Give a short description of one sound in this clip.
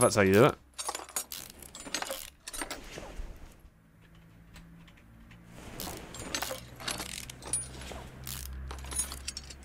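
A ratchet wrench clicks as bolts are unscrewed.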